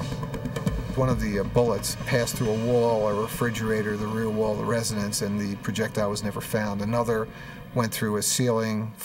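A middle-aged man speaks calmly and clearly into a microphone.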